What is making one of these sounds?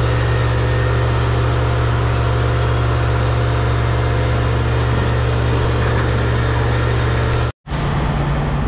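A heavy machine engine hums steadily and loudly.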